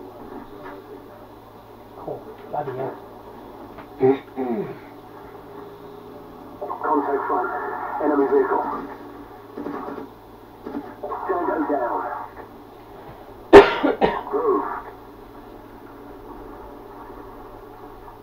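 Game sounds play faintly through a small television speaker.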